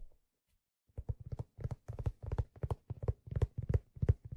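Fingers tap rapidly on a hat brim close to a microphone.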